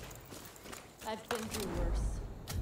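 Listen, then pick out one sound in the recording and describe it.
A handgun is reloaded with metallic clicks.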